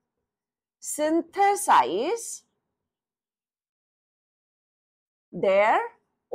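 A woman speaks calmly and clearly, close by, in short phrases.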